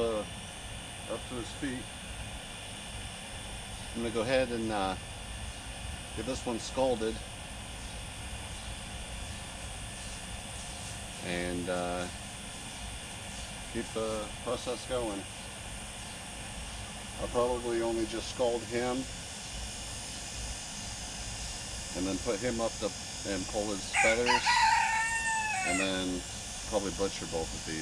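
A middle-aged man speaks calmly nearby, in short phrases with pauses.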